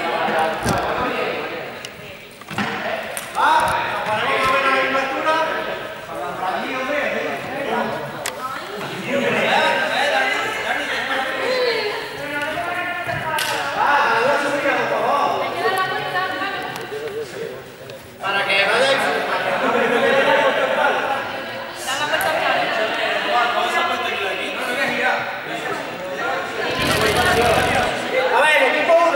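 Young people talk and chatter nearby in a large echoing hall.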